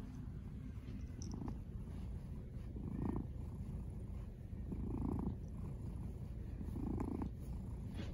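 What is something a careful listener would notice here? A cat snores softly in slow, even breaths.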